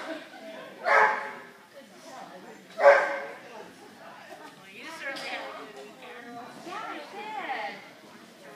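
A woman calls out loud commands in a large echoing hall.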